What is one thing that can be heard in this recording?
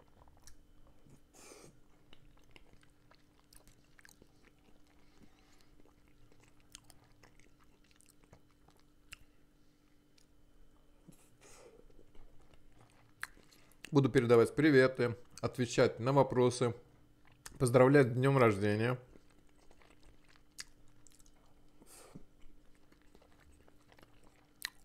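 A middle-aged man chews food close to a microphone.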